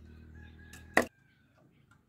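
Bamboo poles knock together.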